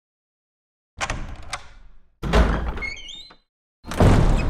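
A heavy wooden door creaks slowly open.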